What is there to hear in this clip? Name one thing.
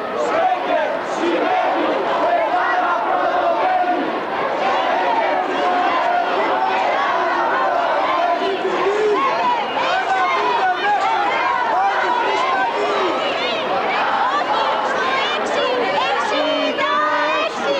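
A large crowd of men and women sings together outdoors.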